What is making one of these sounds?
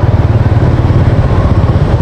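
Motorbikes ride past on a road.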